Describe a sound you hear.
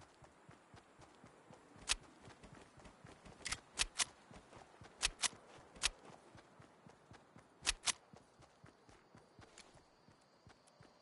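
Footsteps run over grass in a video game.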